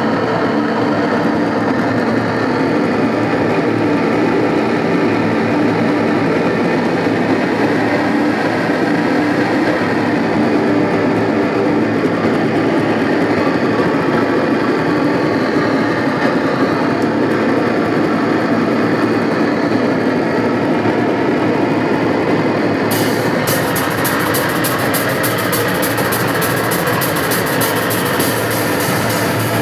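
A distorted electric guitar plays loudly in an echoing room.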